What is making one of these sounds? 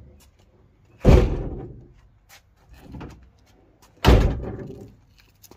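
Van doors slam shut with loud bangs.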